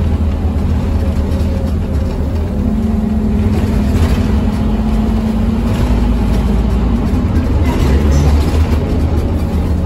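A diesel city bus engine drones under acceleration, heard from inside.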